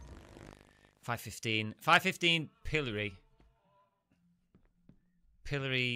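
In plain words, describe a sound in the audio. A man speaks close to a microphone with animation.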